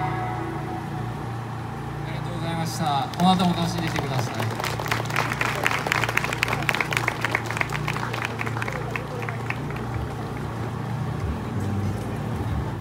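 A live band plays music outdoors through loudspeakers.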